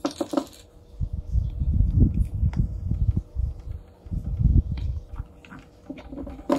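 Hands rub against a plastic casing with a low rumbling scrape.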